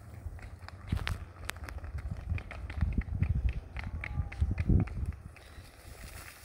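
A miniature horse's hooves clop on asphalt.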